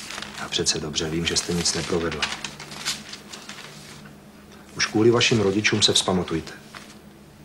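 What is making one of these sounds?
A man speaks calmly in a low voice close by.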